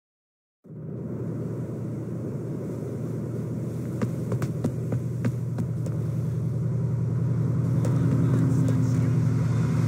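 Footsteps hurry over pavement.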